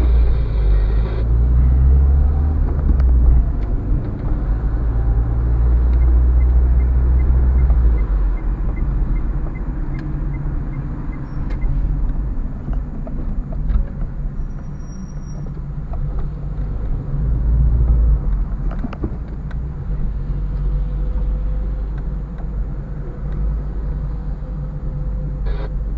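A car engine hums and rumbles steadily from inside the cabin.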